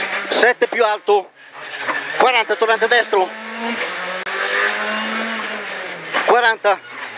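A car engine roars and revs hard close by.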